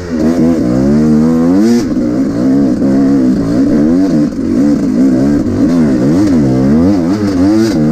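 Tyres crunch over dry leaves and dirt.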